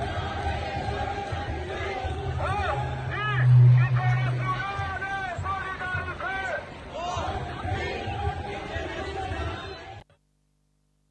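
A large crowd chants loudly together outdoors.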